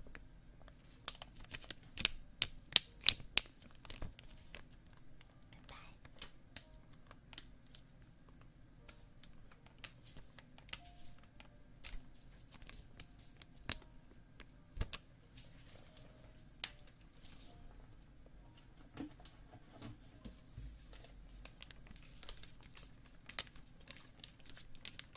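A foil packet crinkles and rustles close to a microphone.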